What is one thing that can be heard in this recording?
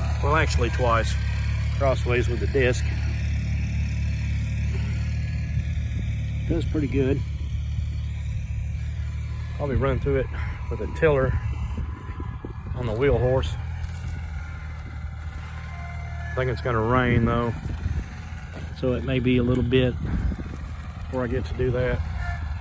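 A small tractor engine drones steadily nearby.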